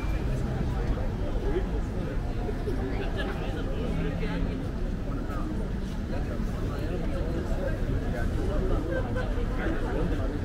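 Cars pass by on a street.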